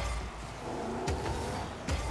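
A boost bursts with a short whoosh.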